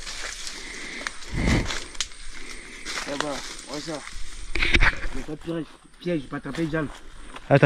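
A machete swishes and chops through plants.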